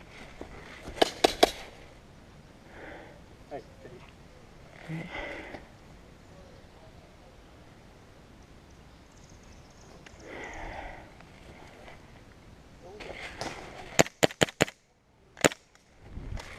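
A paintball marker fires in quick bursts of sharp pops close by.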